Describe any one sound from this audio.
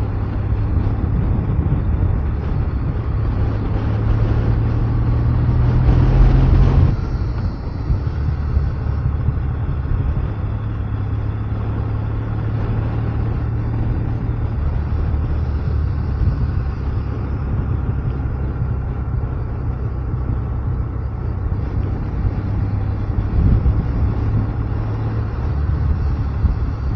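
A motorcycle engine hums steadily, rising and falling slightly with speed.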